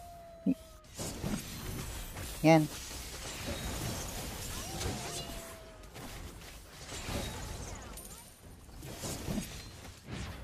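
Game sound effects of spells and strikes whoosh and clash.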